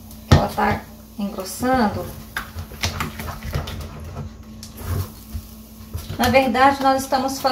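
A wooden spoon scrapes and knocks against a metal pot while stirring thick porridge.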